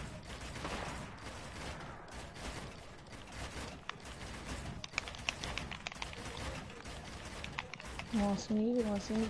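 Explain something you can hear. Footsteps patter quickly on a hard surface.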